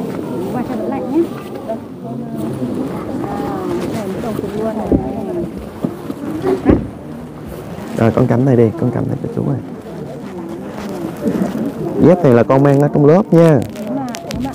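A young woman speaks warmly up close.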